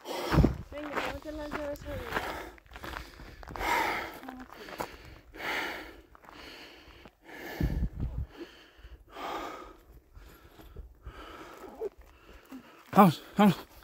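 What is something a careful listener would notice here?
Footsteps crunch on a gravel trail.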